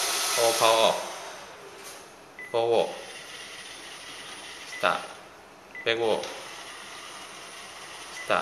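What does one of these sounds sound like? A small robot hums and whirs as it rolls across the floor.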